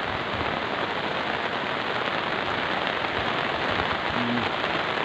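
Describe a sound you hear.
Muddy water rushes and churns down a slope.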